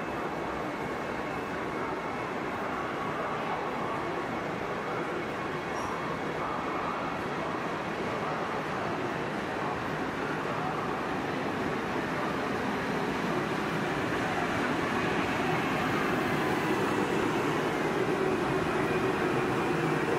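A train rumbles slowly into a station, growing louder as it nears.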